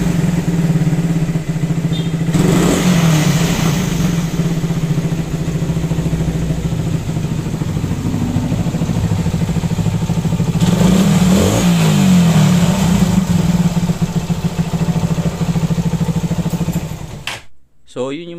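A motorcycle engine idles close by with a steady, rattling hum.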